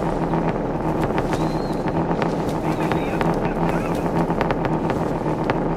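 Wind blows steadily outdoors, rustling tall grass.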